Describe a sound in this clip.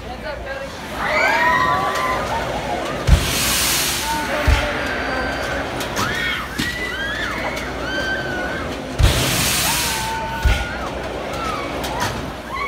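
Young riders scream far off, high overhead.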